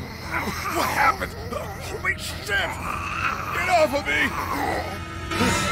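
A young girl speaks anxiously.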